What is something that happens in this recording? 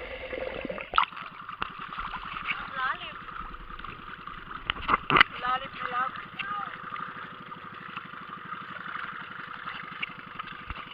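Water splashes and laps close by in the open air.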